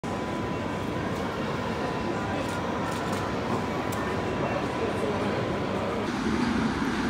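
An electric train hums while standing at a platform.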